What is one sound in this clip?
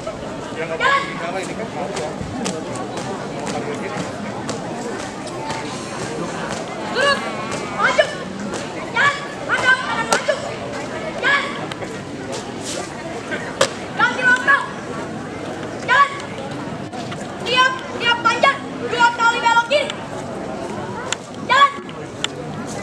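Young women shout marching calls in short bursts outdoors.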